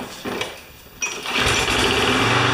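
A lawn mower engine sputters to life.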